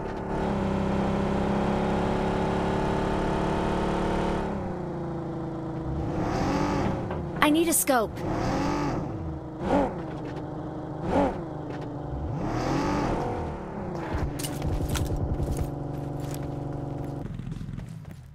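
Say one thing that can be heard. A car engine hums steadily, revving up and down as the car drives.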